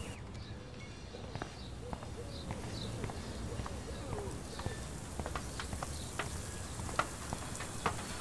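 Footsteps walk steadily on pavement.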